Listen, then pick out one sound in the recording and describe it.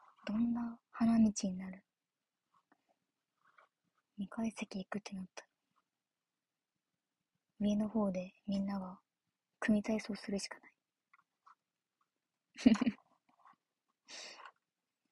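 A young woman talks calmly close to a microphone, in short bursts with pauses.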